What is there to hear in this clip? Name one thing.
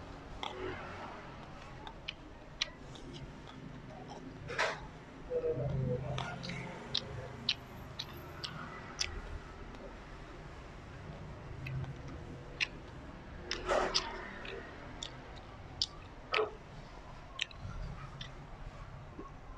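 Fingers squelch and mix wet food with small sticky clicks.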